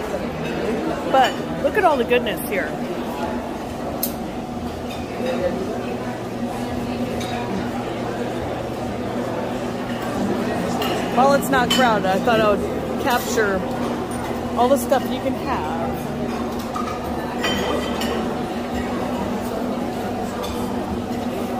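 A crowd of people chatters in the background of a busy room.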